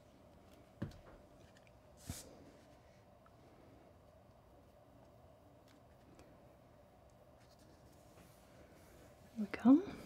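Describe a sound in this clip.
Paper card rustles softly under pressing hands.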